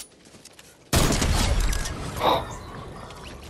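A rifle fires a single loud, booming shot.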